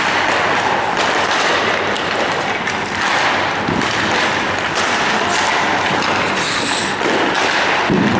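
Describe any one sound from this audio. Hockey sticks clack on the ice.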